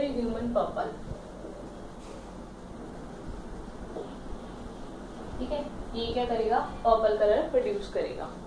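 A young woman speaks calmly and clearly, close by.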